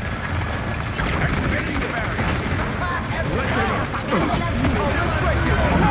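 An explosion bursts with a loud bang.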